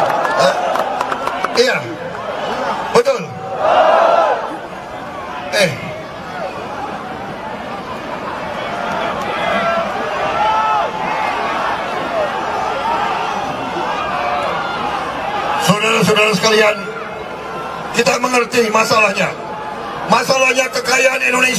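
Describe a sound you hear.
A man speaks loudly into a microphone over loudspeakers, outdoors.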